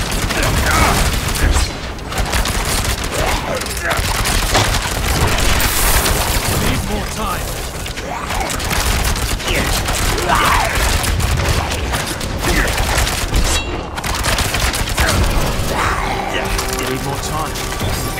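Magic blasts and heavy impacts crackle and boom without pause.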